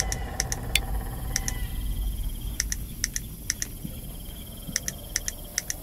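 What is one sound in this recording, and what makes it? Short, bright clicks sound in quick pairs as puzzle tiles turn.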